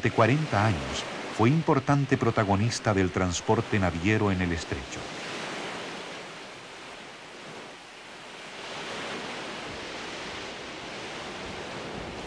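Waves crash and surge onto a shore.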